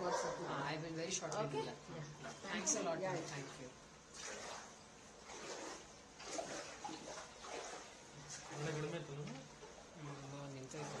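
A middle-aged woman speaks close by, with some feeling.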